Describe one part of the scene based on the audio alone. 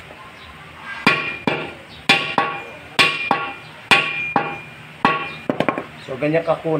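A hammer strikes metal with sharp, ringing blows.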